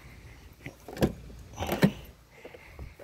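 A vehicle's rear door latch clicks and the door swings open.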